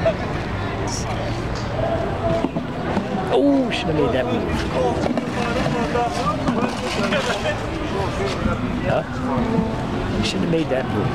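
Several adult men talk casually nearby in a lively outdoor crowd.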